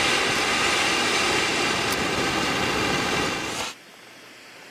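A flare hisses loudly.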